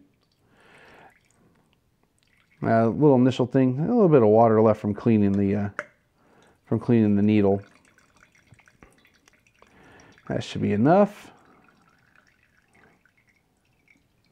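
Wine trickles into a glass.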